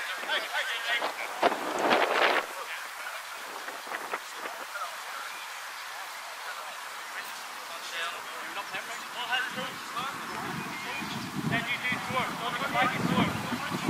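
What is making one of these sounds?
Players shout to each other across an open pitch outdoors.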